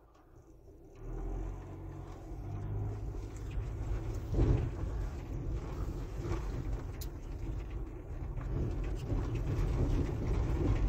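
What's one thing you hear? A car engine rumbles low as the car drives slowly.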